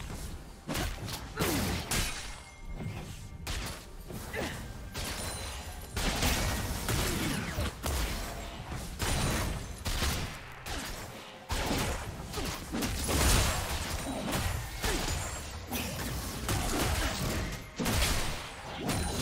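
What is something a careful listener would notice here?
Fantasy combat sound effects crackle, whoosh and boom in a busy battle.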